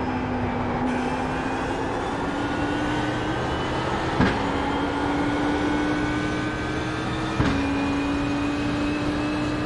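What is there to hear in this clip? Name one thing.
A racing car engine roars loudly, slowly rising in pitch.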